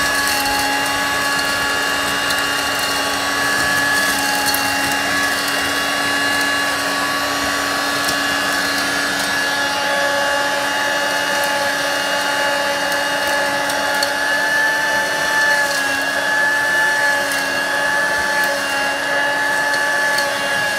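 Crumbs rattle and click as a vacuum nozzle sucks them up from a carpet.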